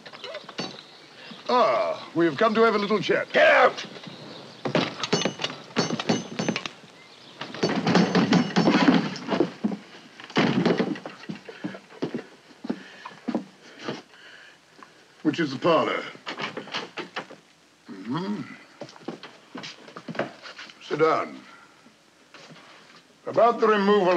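A second man answers briefly in a lower voice.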